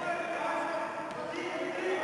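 A basketball bounces on the wooden floor.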